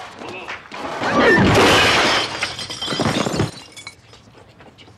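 A pane of glass shatters loudly.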